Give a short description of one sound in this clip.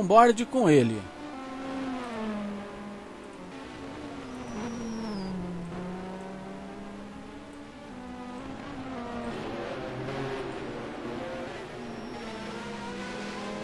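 A racing car engine drones more quietly in the distance.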